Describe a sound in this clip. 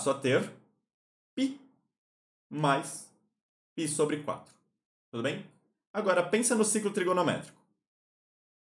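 A young man explains calmly into a close microphone, in short bursts.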